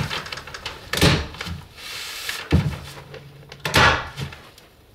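A staple gun snaps sharply several times.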